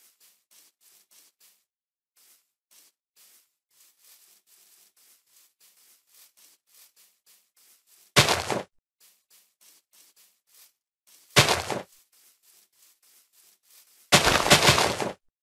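Footsteps crunch softly on grass at a steady walking pace.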